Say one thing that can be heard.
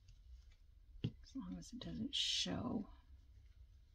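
Fabric ribbon rustles and crinkles under fingers.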